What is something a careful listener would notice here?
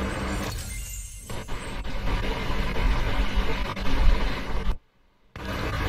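A game menu plays a shimmering chime as a prize box opens.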